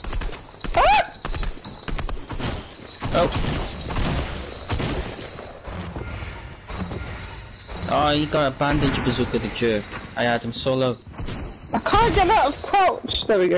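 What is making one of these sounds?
Wooden walls clatter into place in quick bursts.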